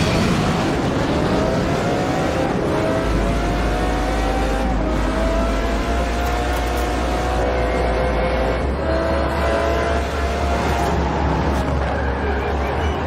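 A race car engine roars loudly, rising in pitch and dropping with each gear change.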